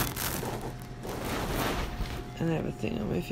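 Clothing rustles against a microphone.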